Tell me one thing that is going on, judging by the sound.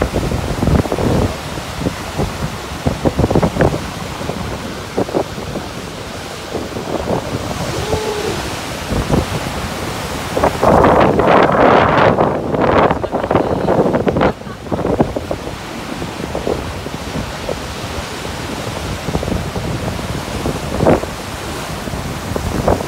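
Waves crash and surge against rocks.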